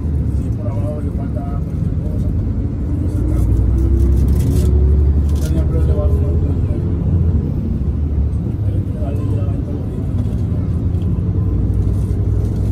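Traffic rumbles steadily on a busy road nearby.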